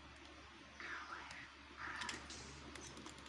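A knife swishes through the air in a video game.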